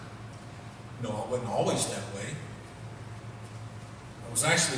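A middle-aged man speaks emotionally into a microphone in a large echoing hall.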